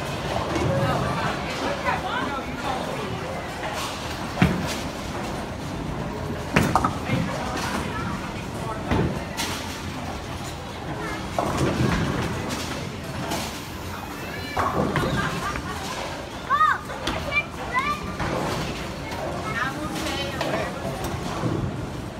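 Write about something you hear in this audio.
Bowling pins crash loudly in a large echoing hall.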